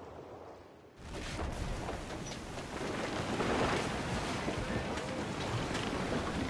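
Cannons boom in a loud battle at sea.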